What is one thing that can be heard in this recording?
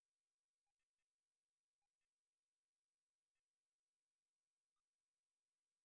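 Short electronic beeps chirp now and then.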